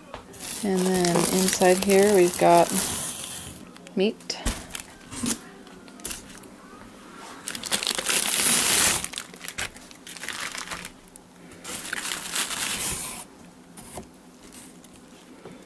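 Plastic packaging crinkles and rustles as it is handled.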